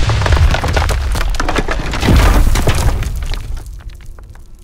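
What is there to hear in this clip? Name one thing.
Debris clatters and rumbles as it falls.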